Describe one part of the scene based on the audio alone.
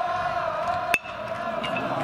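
A metal bat cracks sharply against a baseball.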